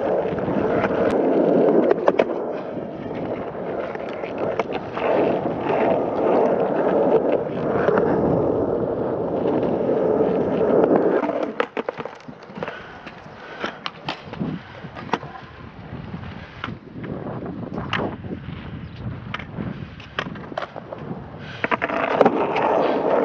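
A skateboard clacks and snaps against concrete.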